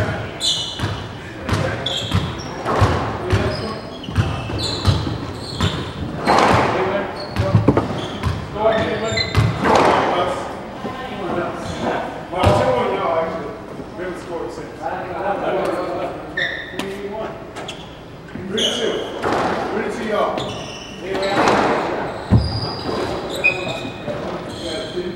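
A squash ball smacks against the walls in an echoing court.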